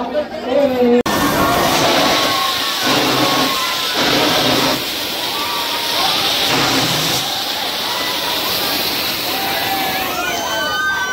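A fountain firework hisses and crackles.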